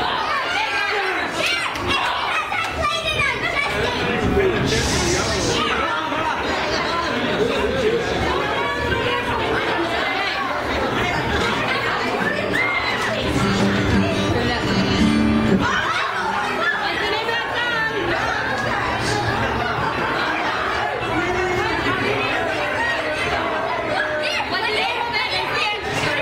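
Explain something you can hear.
A crowd of men, women and children chatters loudly in a busy room.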